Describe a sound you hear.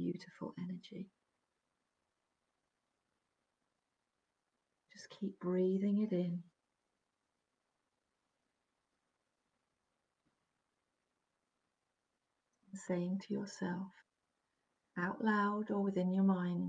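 A middle-aged woman speaks calmly into a close microphone, pausing between phrases.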